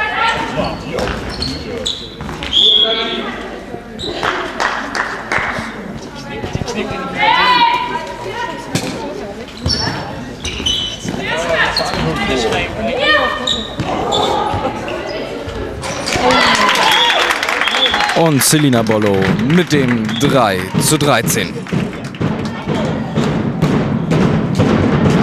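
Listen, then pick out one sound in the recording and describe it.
Women players shout and call out across an echoing sports hall.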